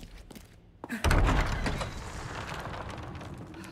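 Heavy wooden doors creak and swing open.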